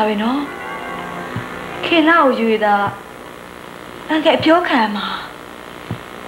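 A young woman speaks emotionally, close by.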